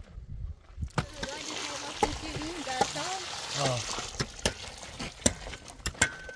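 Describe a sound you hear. Water splashes and gurgles as it pours into a hole in the ground.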